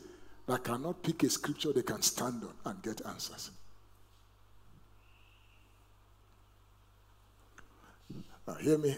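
A middle-aged man speaks with animation through a microphone in a large room.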